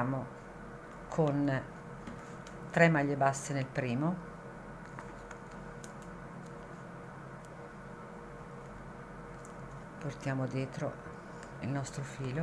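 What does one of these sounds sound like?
Pliers clink against a metal ring.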